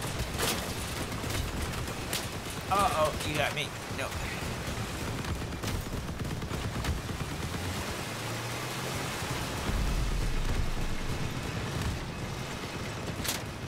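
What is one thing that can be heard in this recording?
Gunshots crack.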